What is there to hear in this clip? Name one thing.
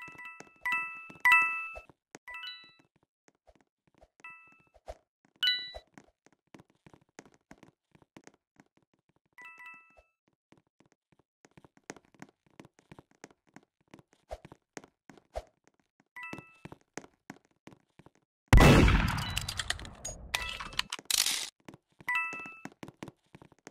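A short bright chime rings again and again.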